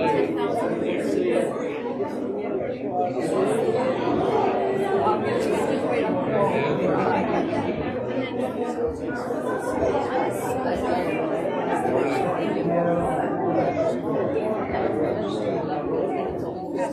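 Women chat at a distance.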